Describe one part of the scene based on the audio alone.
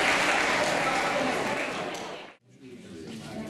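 A crowd of children chatters loudly in a large echoing hall.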